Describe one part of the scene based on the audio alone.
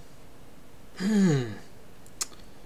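A man gives a short laugh.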